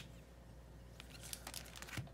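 A plastic comic sleeve crinkles as it is handled.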